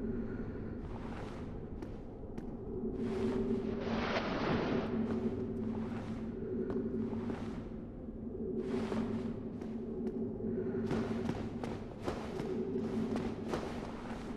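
Armoured footsteps clank on a stone floor.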